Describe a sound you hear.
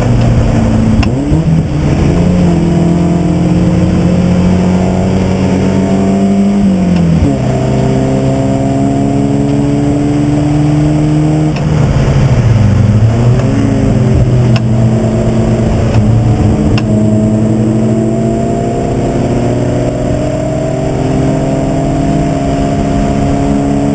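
A race car engine roars loudly from inside the cabin, revving up and dropping as gears shift.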